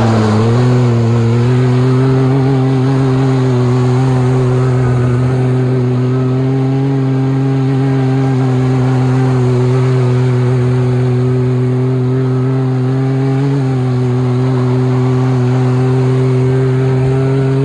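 Studded tyres spin and scrape on ice.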